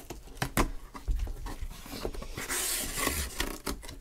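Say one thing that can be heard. Cardboard flaps are pulled open with a rustle.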